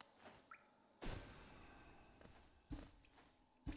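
A spell blasts out with a loud whooshing burst.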